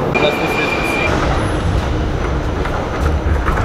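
A subway train rumbles loudly.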